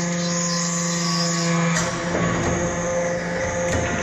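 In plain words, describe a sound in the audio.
Metal shavings rattle along a conveyor.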